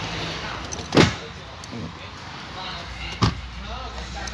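A hand knocks against a car seat with dull thumps.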